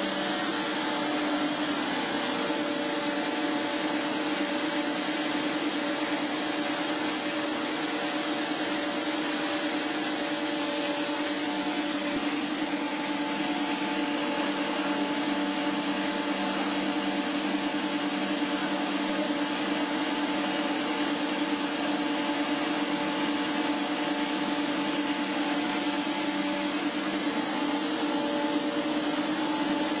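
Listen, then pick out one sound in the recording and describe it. Factory machinery hums steadily.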